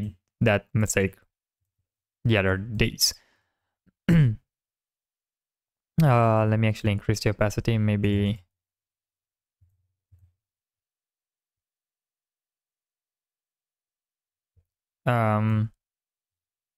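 A young man speaks calmly and close into a microphone, in short bursts with pauses.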